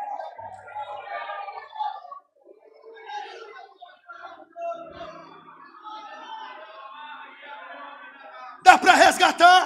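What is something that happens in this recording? A crowd of people murmurs and calls out in a large hall.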